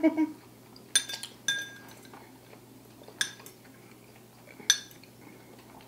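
Spoons clink against bowls.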